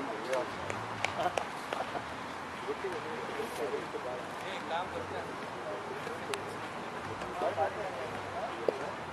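Men call out faintly across an open field outdoors.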